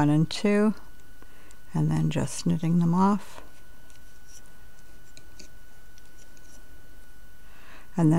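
A hook clicks softly against plastic pegs on a knitting loom.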